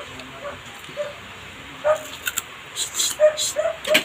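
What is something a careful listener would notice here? A woman bites into crisp food close to a microphone.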